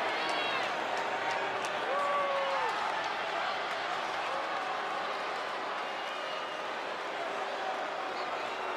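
A large arena crowd cheers and roars steadily.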